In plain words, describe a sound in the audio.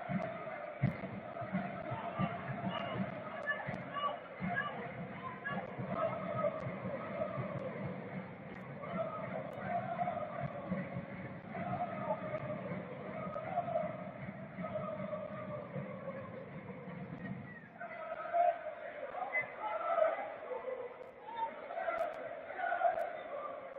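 A crowd chants and sings steadily in a large open stadium.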